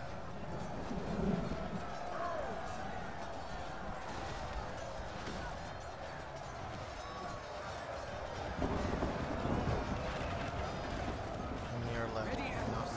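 Many soldiers shout and yell in battle.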